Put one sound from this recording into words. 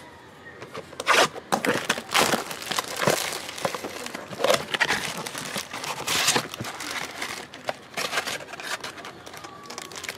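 Plastic wrapping crinkles and rustles as a box is unwrapped.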